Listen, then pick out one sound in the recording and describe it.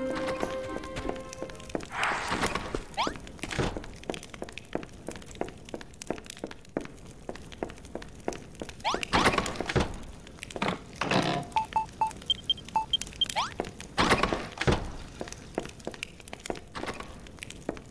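Quick footsteps patter on a wooden floor.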